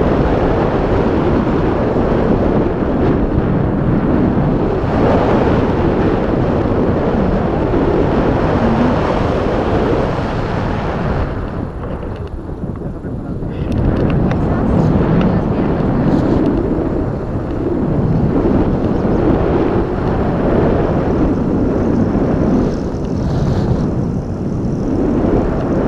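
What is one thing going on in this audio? Strong wind roars and buffets against a microphone outdoors.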